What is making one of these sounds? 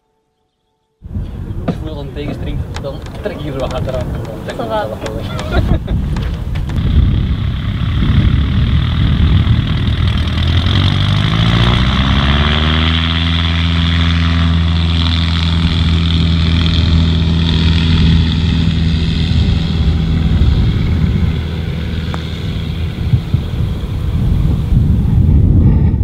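Wind blows across a microphone outdoors.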